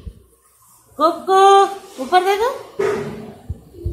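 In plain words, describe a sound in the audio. A small dog whines and yaps in short bursts.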